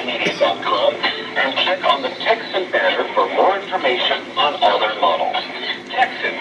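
A radio receiver plays a thin, muffled broadcast through a small speaker.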